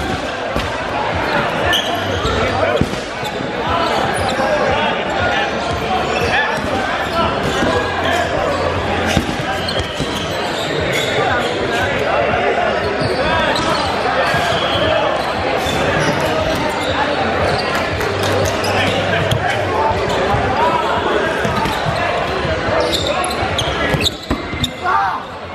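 A crowd of young men shout and call out in an echoing gym.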